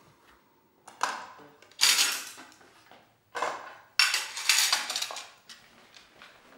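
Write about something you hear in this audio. Dishes clatter against each other.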